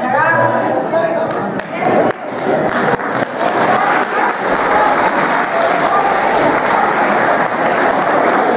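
An elderly woman speaks loudly and theatrically in a large hall.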